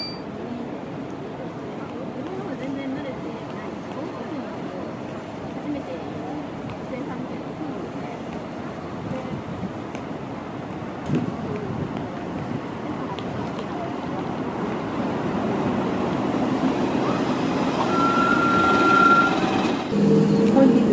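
A bus engine rumbles as a bus pulls in and idles nearby.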